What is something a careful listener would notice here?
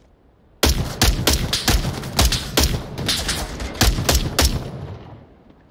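A rifle fires a rapid string of loud gunshots.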